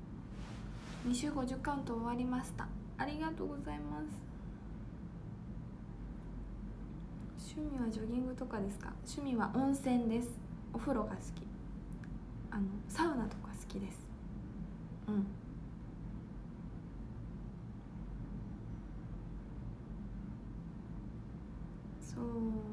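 A young woman speaks casually and close to a microphone, in short bursts with pauses.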